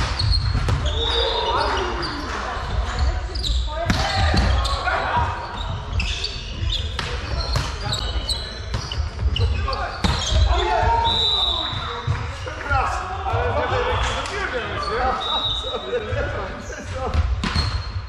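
Young men and women call out to each other during play.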